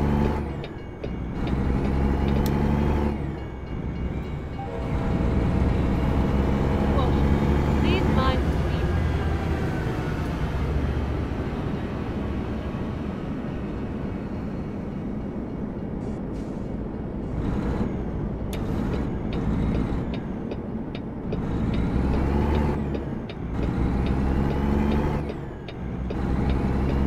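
A truck engine rumbles steadily and rises and falls in pitch as it shifts gears.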